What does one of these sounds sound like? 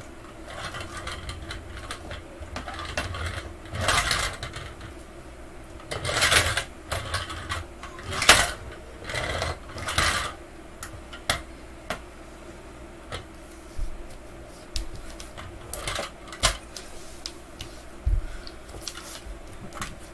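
A toy car rolls and bumps across a wooden floor.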